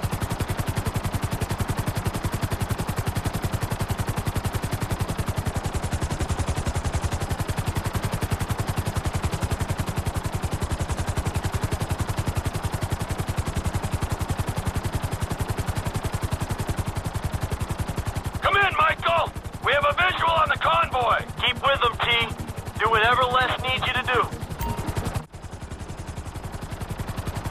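A helicopter's rotor thumps rapidly and steadily as it flies.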